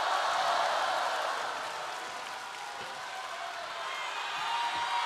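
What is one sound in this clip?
A large audience claps and cheers in a big hall.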